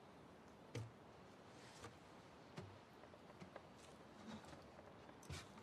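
A wooden guitar bumps and knocks as it is lifted out.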